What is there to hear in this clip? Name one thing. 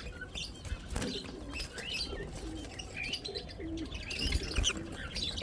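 Small birds chirp and peep softly up close.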